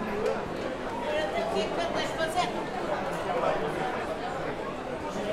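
A crowd of people chatter all around in an echoing hall.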